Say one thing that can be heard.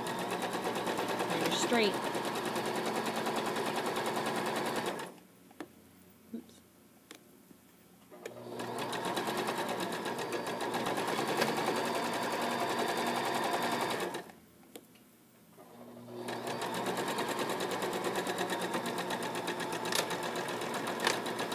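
A sewing machine runs with a fast, steady rattle, stopping now and then.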